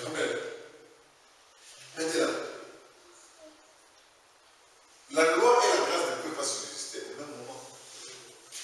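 A man speaks in a slow, measured voice in a room with some echo.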